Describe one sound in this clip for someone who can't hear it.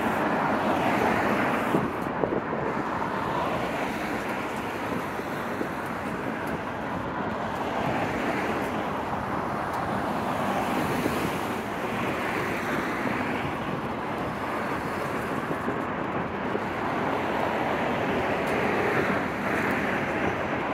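Cars drive past on a road, their tyres hissing on the tarmac.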